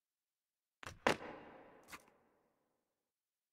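A shotgun fires once with a short echoing tail.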